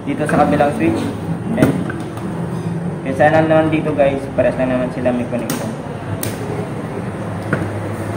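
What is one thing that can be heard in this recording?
Small plastic switch parts click and tap as they are handled.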